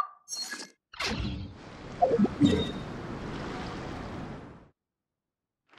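A magical burst crackles and hums.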